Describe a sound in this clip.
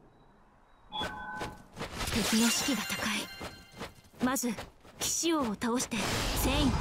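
Swords slash and clash in quick bursts.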